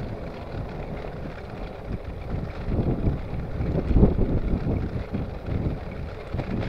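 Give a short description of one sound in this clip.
Bicycle tyres roll over a road.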